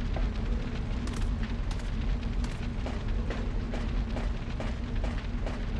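Footsteps tap on a floor.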